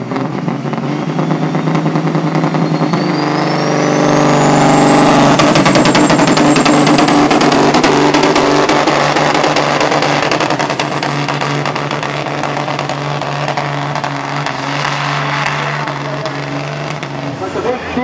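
A turbo whistle rises to a high shrill whine and holds.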